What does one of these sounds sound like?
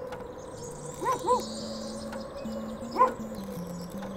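A small dog yips a few times.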